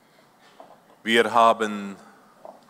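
A young man speaks through a microphone in an echoing hall.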